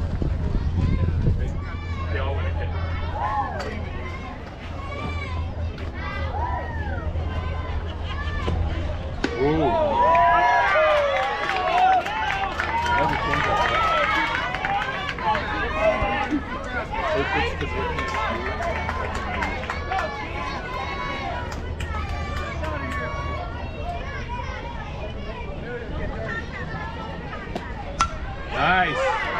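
Young women shout and cheer nearby.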